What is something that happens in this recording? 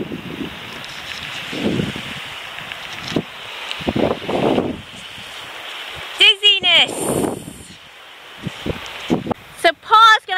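Wind buffets and rumbles against the microphone outdoors.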